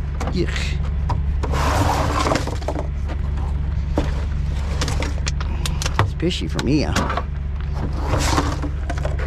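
Rubbish rustles inside a plastic bin.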